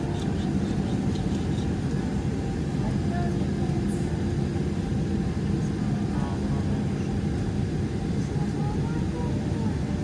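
A plane's engines roar steadily while it rolls along the runway.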